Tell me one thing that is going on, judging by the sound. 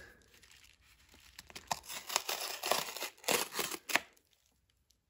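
A blade slices through a paper envelope.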